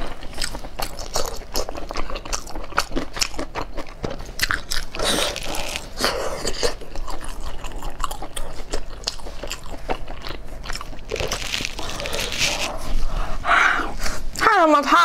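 A young woman chews and slurps food loudly close to a microphone.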